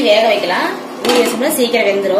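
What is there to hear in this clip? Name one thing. A glass lid clanks onto a pan.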